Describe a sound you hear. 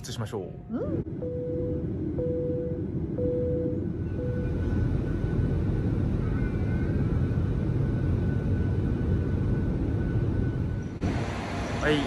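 Jet engines roar steadily inside an airplane cabin.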